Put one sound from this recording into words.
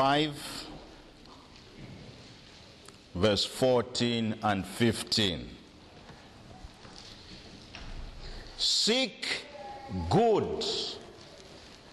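A man preaches with emphasis into a microphone, pausing between phrases.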